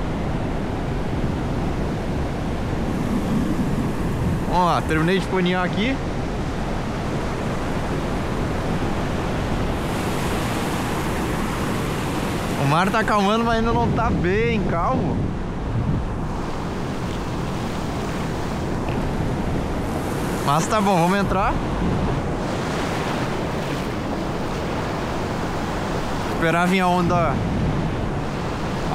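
Waves wash and break steadily on a shore, outdoors.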